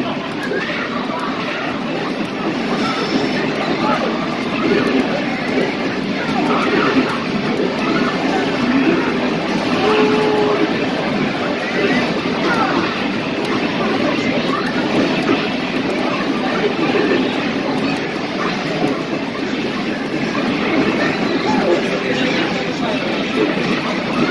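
Fighting game punches and kicks thud from an arcade loudspeaker.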